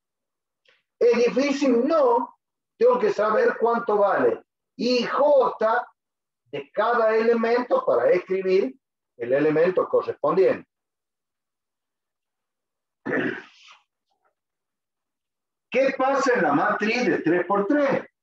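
A man explains calmly and clearly, close by, in short phrases with pauses.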